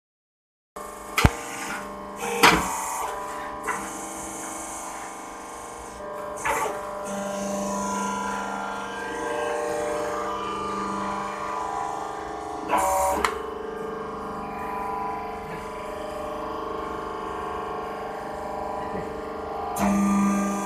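A machine hums and rattles steadily.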